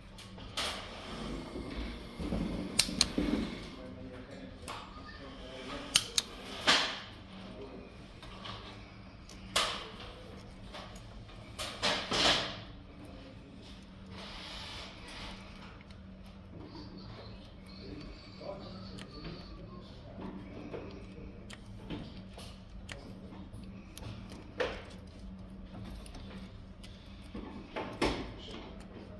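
A punch-down tool snaps sharply as it seats wires into a jack.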